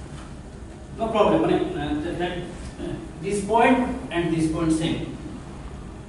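An elderly man lectures calmly and pauses between phrases.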